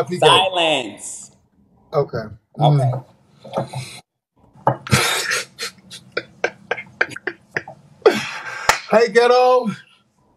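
A young man talks and laughs through an online call.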